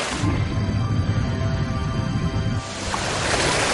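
Underwater bubbles rumble and gurgle.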